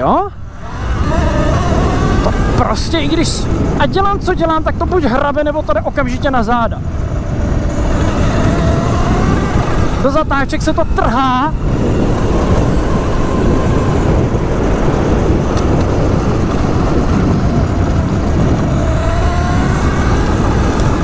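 An electric motor whines, rising in pitch as it speeds up.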